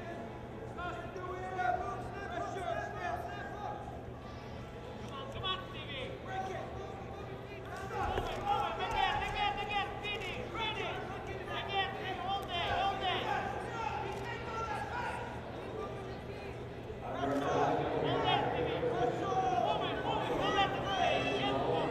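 Wrestling shoes squeak on a mat.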